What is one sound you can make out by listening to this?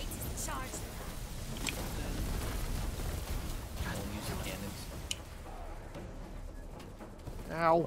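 Game gunfire rattles and crackles.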